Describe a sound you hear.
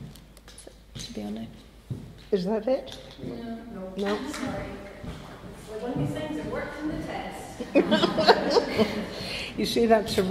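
An elderly woman reads aloud into a microphone, heard through a loudspeaker in a room.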